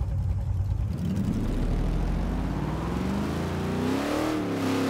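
A car engine revs up as the car speeds away.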